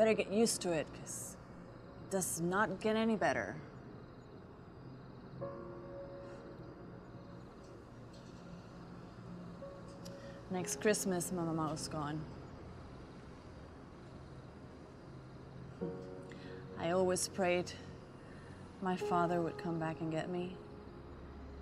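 A woman speaks quietly and tensely close by.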